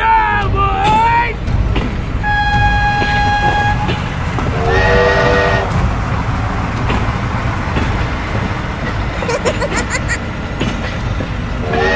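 A diesel train engine rumbles past.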